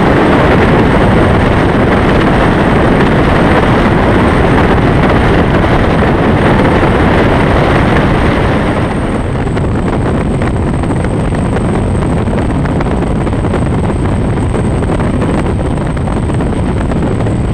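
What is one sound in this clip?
Wind buffets the microphone.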